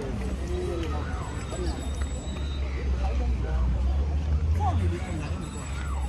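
Young men and women chat casually nearby.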